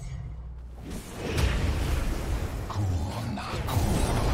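Weapons clash in a fight.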